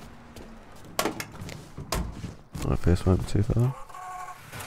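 A car door opens and slams shut.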